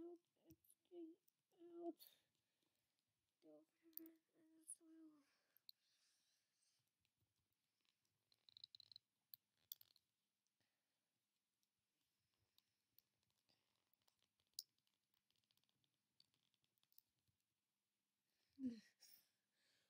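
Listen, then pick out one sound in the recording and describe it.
Small plastic toy pieces click and rattle as they are handled.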